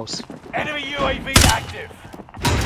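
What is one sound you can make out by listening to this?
A rifle fires a short, loud burst of shots.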